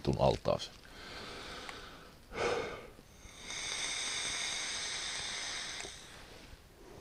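A man puffs and draws on a vape.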